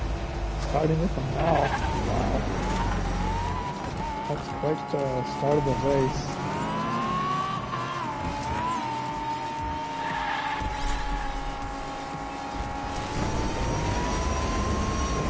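A racing car engine whines steadily, rising and falling in pitch.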